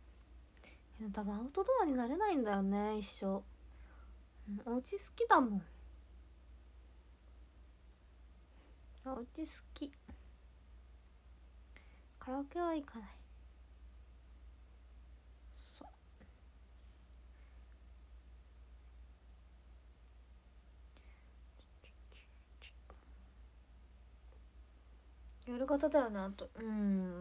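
A young woman speaks softly and close by, in short bursts with long pauses.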